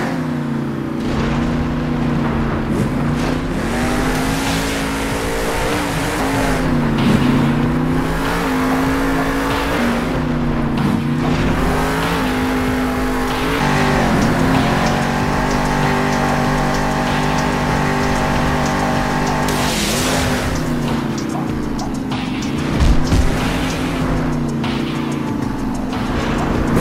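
A monster truck engine roars and revs up and down.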